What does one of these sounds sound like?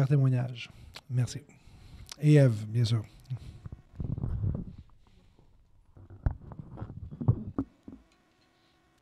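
A man speaks calmly into a microphone in a quiet echoing room.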